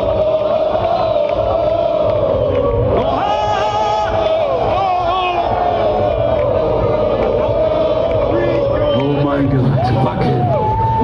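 A rock band plays loudly through large loudspeakers outdoors.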